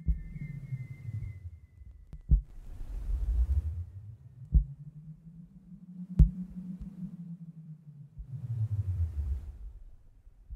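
Deep electronic music plays with heavy bass thumps.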